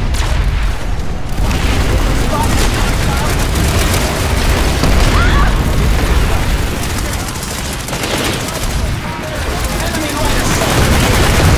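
Rapid gunfire rattles throughout.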